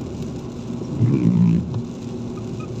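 A windscreen wiper sweeps across the glass with a thump.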